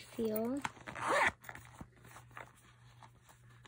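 A zipper slides open.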